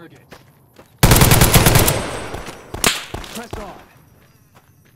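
A machine gun fires a rapid, loud burst of shots.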